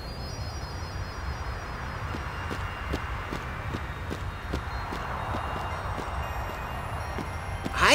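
Footsteps crunch across snow.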